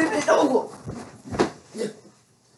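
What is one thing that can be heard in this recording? A body thuds onto the floor.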